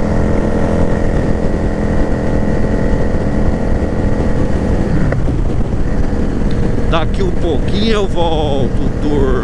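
A motorcycle engine hums steadily at speed, then its pitch drops.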